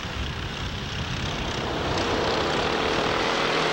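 Kart engines buzz and whine as they race past.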